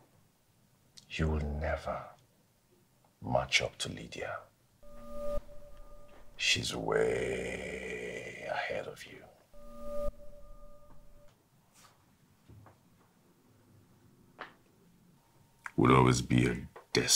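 A man speaks close by in a tense, firm voice.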